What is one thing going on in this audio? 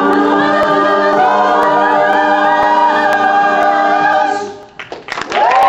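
A mixed group of young men and women sings together, echoing in a room.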